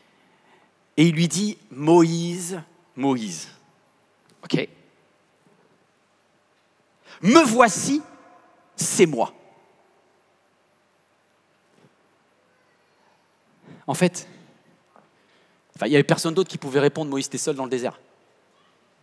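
A man speaks calmly into a headset microphone, pausing between phrases.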